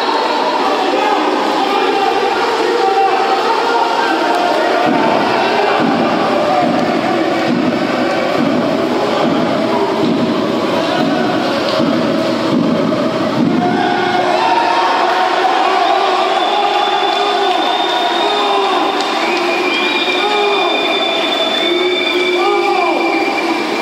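Water splashes as swimmers thrash and churn through a pool.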